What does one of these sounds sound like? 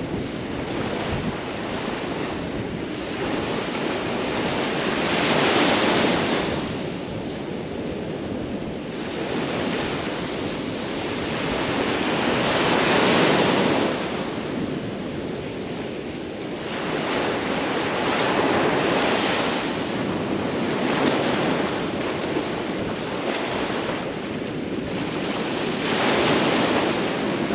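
Wind blows across the open beach.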